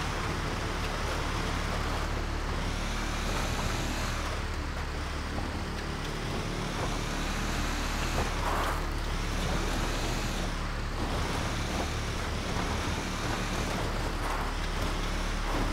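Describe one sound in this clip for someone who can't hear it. Tyres crunch and rattle over a gravel track.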